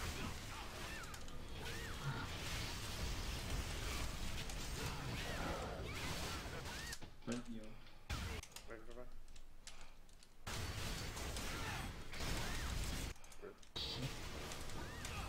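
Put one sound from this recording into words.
Spell effects whoosh and crackle in a busy fight.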